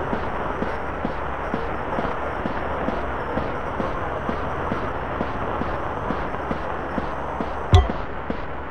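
Footsteps tread quickly and steadily over soft ground.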